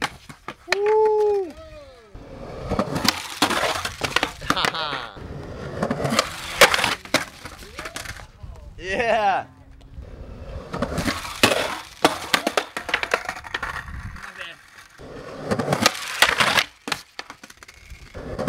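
A skateboard clacks down hard onto concrete.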